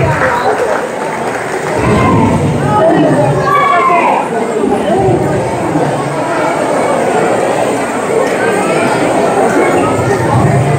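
A seated crowd of adults and children murmurs and chatters in a large echoing hall.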